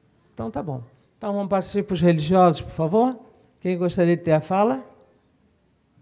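A woman speaks into a microphone, heard over a loudspeaker.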